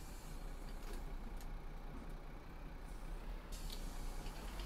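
A bus door hisses and thumps shut.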